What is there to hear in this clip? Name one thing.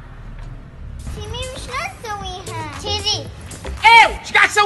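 Young children shout and squeal excitedly up close.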